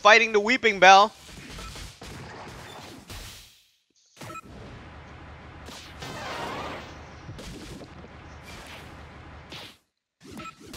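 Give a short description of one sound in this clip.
Electronic battle sound effects zap, pop and crackle.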